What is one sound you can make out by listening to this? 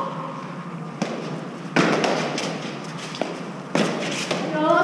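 A gloved hand strikes a hard fives ball, which smacks against a wall.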